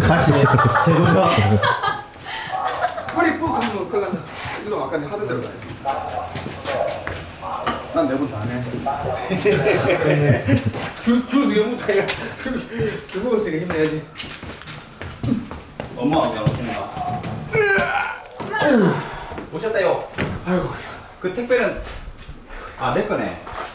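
Several men talk with animation nearby.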